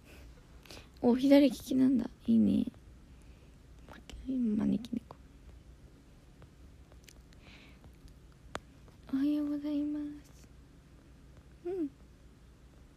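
A young woman speaks softly and close to a phone microphone.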